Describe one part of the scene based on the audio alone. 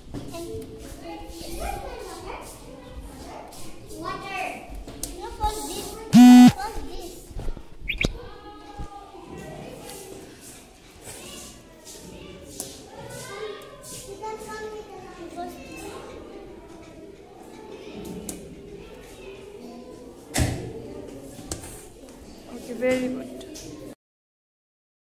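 Young children talk excitedly close by.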